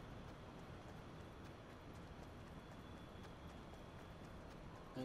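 Footsteps thud quickly on grass and dirt.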